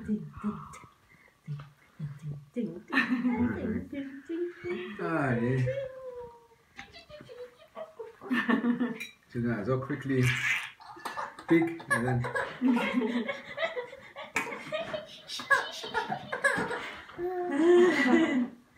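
A woman talks playfully and laughs close by.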